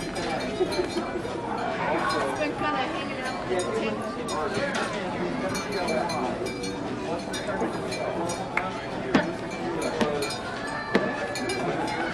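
A crowd of people chatters and calls out loudly in an echoing hall.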